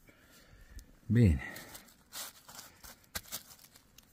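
A hand rustles through dry leaves.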